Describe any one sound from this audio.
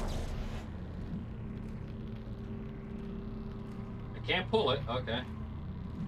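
A futuristic gun fires short energy bursts.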